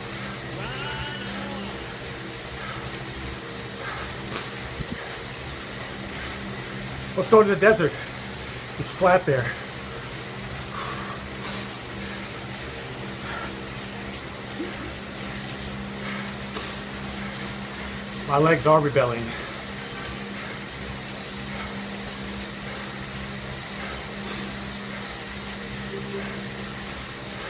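An indoor bike trainer hums steadily.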